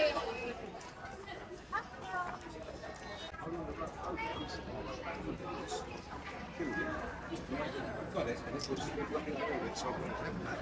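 A small child babbles and chatters close by.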